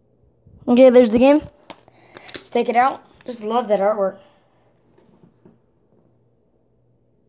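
A plastic case clicks and rattles as hands handle it.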